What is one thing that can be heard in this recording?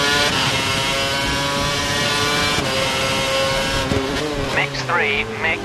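A racing car engine screams at high revs, then drops in pitch as it shifts down.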